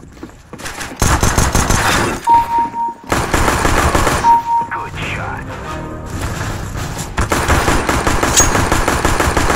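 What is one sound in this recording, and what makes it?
A pistol fires a rapid series of loud shots.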